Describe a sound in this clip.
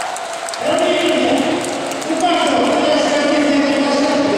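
Several men clap their hands.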